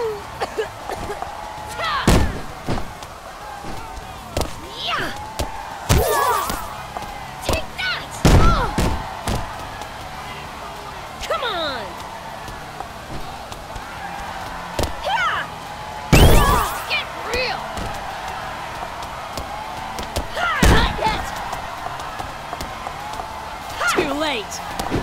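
Punches land with sharp smacks.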